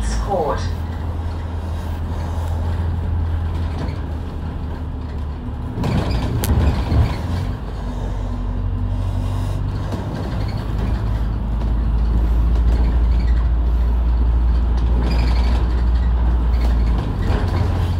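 A heavy vehicle's engine drones as it drives along a wet road.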